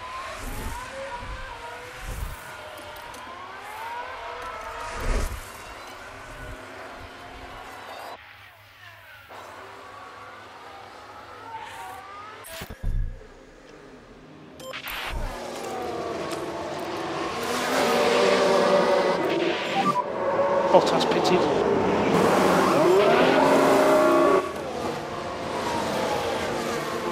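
A racing car engine whines at high revs and passes by.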